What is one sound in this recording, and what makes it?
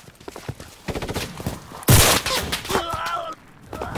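Gunshots crack loudly nearby.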